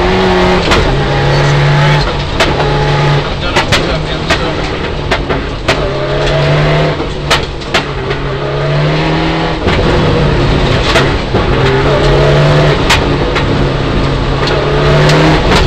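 A rally car engine revs hard and shifts gears.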